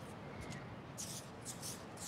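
Hands dig and scrape through sand.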